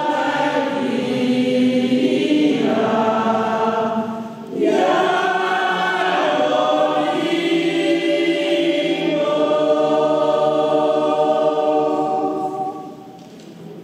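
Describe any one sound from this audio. A man sings in a slow, drawn-out chant through a microphone.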